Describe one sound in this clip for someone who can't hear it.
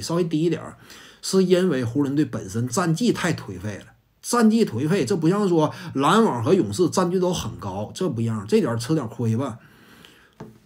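A man speaks calmly and close to a clip-on microphone.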